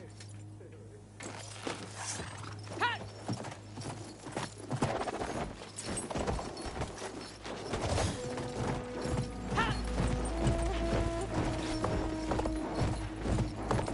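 Horse hooves pound on the ground at a gallop.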